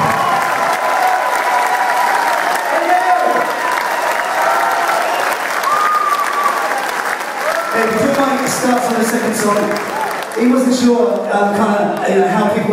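A rock band plays loudly in a large hall.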